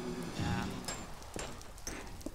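A pickaxe chips at stone with quick, dry taps.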